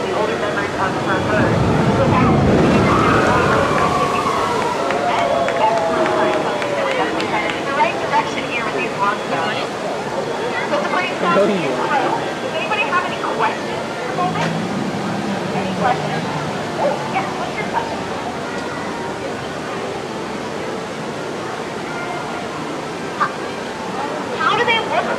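A crowd of people chatters outdoors.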